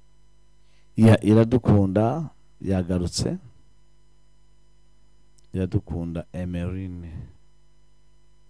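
A man speaks into a microphone with animation, in short bursts.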